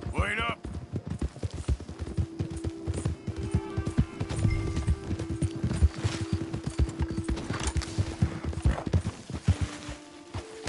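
A horse's hooves thud along at a steady pace.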